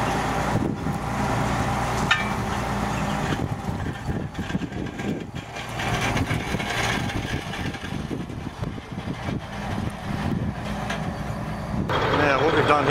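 A diesel truck engine rumbles steadily as the truck rolls slowly past.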